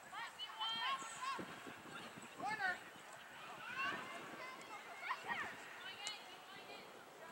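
Young women shout to each other across an open field.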